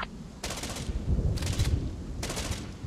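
An explosion booms with a low rumble.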